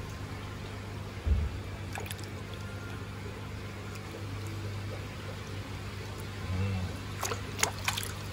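Water splashes in a shallow tub.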